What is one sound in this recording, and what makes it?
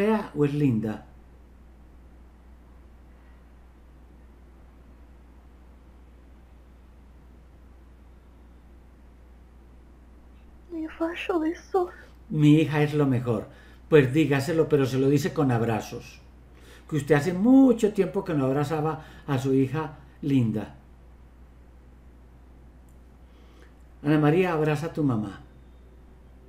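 A middle-aged man speaks calmly through an online call, in short bursts with pauses.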